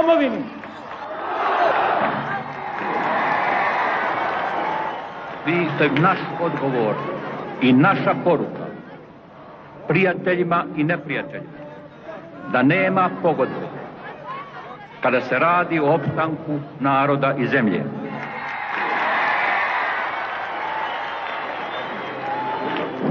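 A large crowd cheers and roars in waves.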